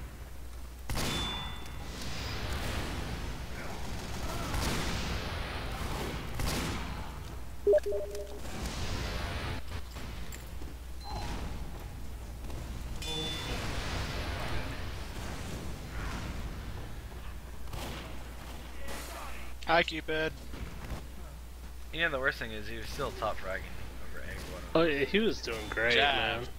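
A revolver fires sharp, loud shots.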